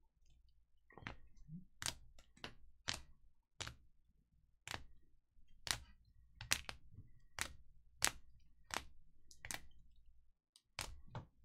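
Hard plastic card cases click and clack against each other as they are shuffled.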